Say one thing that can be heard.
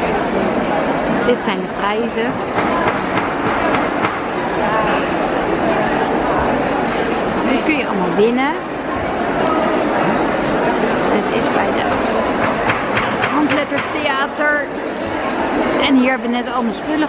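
A crowd of people chatters throughout a large, echoing hall.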